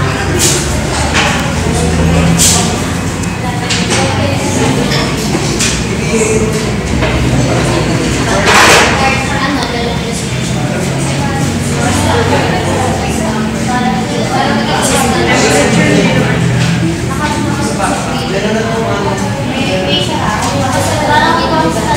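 Many young women chatter at once in a busy, echoing room.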